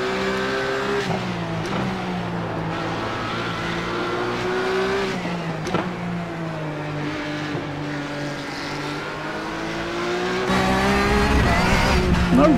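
A racing car engine roars, its pitch rising and falling as it shifts gears.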